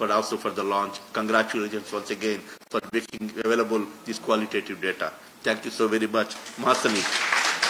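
A man speaks through a microphone in an echoing hall.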